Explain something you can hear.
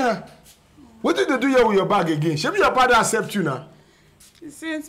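A man asks questions in a puzzled voice.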